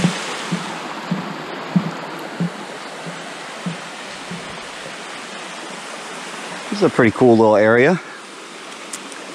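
A shallow stream trickles and babbles nearby.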